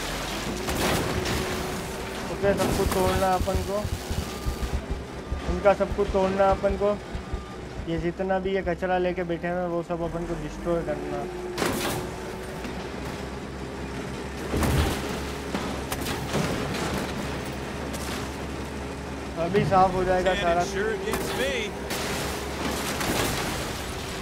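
Objects crash and clatter as a heavy vehicle smashes through them.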